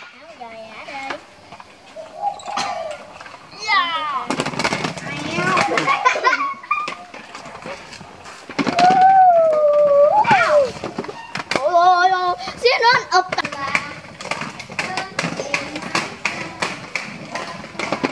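Young children talk and shout excitedly nearby.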